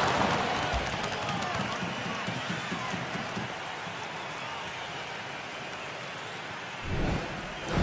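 A crowd cheers loudly in a large arena, then fades.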